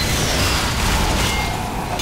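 Gunfire rattles nearby.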